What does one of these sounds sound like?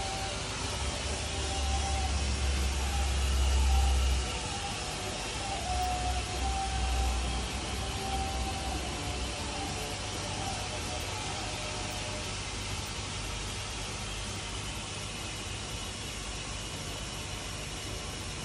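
Water swishes softly in a bowl.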